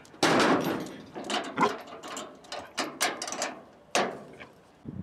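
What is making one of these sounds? A metal latch clacks and snaps shut.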